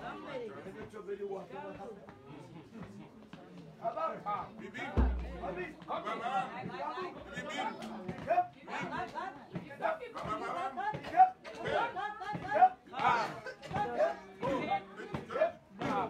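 A group of men and women sing together close by.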